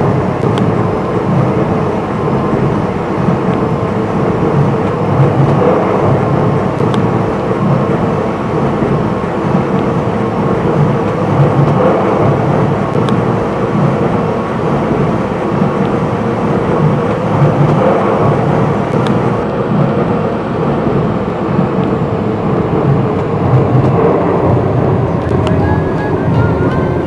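A train rumbles and rattles steadily along tracks.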